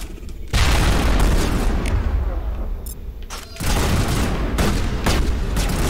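Laser gunfire crackles and blasts in rapid bursts.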